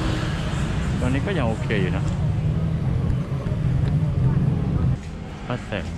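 Motorbikes and cars rumble past on a busy street.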